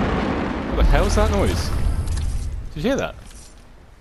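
A fishing line splashes into water.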